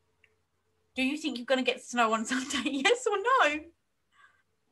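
A woman speaks with animation over an online call.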